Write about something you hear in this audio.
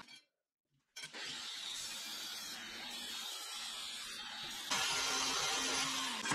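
An angle grinder whirs loudly as it grinds metal.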